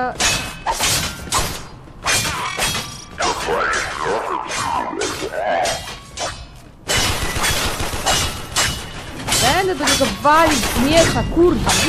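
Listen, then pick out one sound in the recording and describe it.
Weapons strike and clash in rapid bursts.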